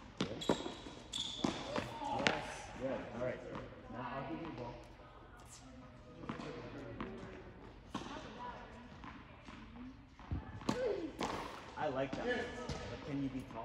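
A man talks calmly nearby in an echoing indoor hall.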